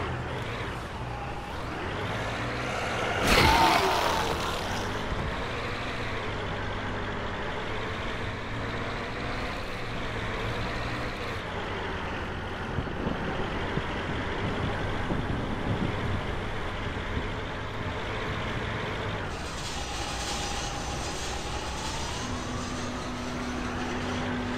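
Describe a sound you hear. A truck engine rumbles steadily as the truck drives.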